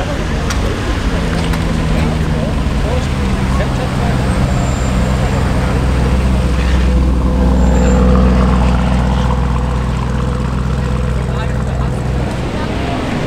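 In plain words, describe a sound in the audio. A sports car engine revs loudly.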